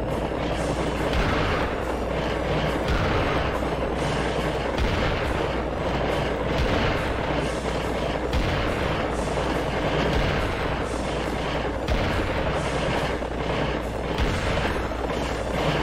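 A shotgun fires again and again in loud booming blasts.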